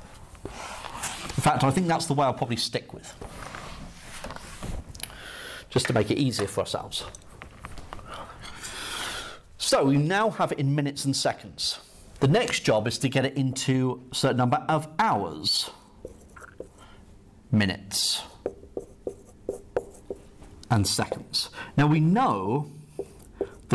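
A man talks calmly nearby, explaining.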